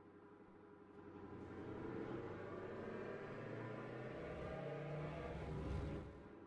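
A sports car engine revs up as the car speeds away.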